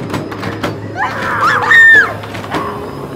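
A young woman screams loudly in a short burst.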